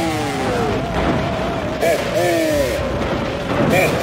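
Flames burst up with a whooshing roar.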